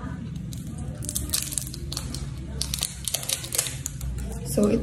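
A plastic case clicks and rattles in someone's hands.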